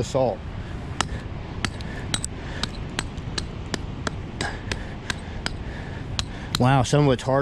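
A small hammer taps sharply on rock.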